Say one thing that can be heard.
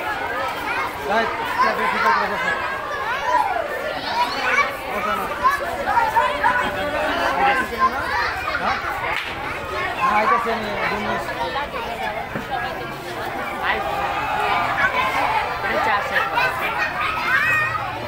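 Young children chatter and shout excitedly nearby.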